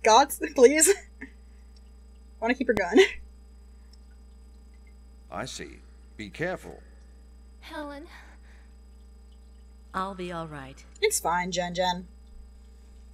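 A young woman speaks close to a microphone, reading out lines with animation.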